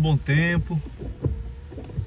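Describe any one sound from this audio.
A windscreen wiper swishes across the glass.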